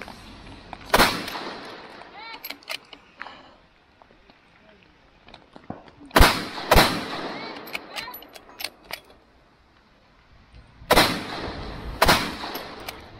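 Rifle shots crack loudly outdoors and echo through the woods.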